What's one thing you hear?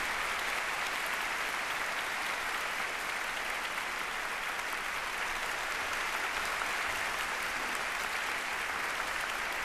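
Applause from a large crowd fills a large hall steadily.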